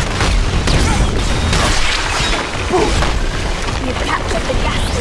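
Game spell effects crackle and whoosh in a dense battle.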